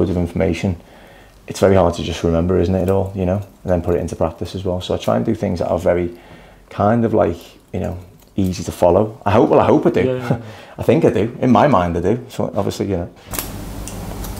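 A man talks calmly and closely through a clip-on microphone.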